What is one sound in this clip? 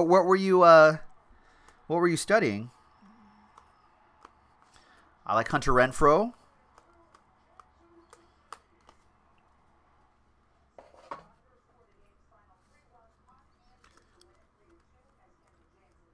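Trading cards flick and rustle between hands.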